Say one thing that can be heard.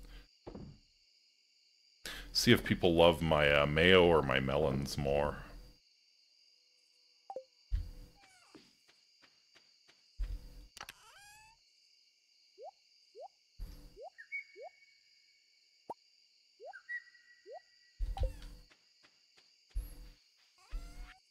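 Short game menu blips and clicks sound now and then.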